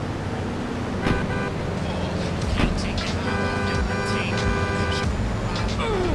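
Music plays from a car radio.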